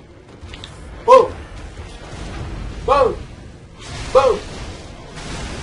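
Blades strike flesh with sharp wet hits.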